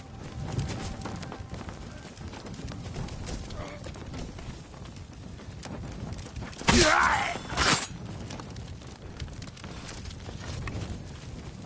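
A bonfire roars and crackles.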